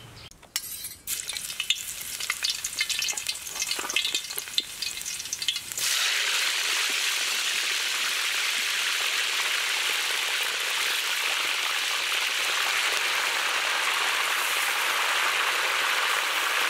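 Hot oil sizzles and crackles loudly in a pan.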